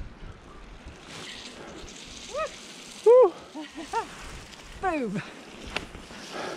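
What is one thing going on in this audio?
Bicycle tyres crunch on a gravel track.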